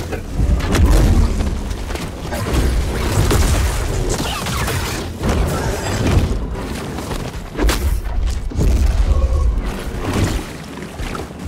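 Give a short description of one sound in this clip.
Lightsabers clash with sharp crackling impacts.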